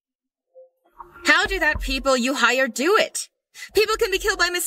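A young woman speaks tensely on the phone, close by.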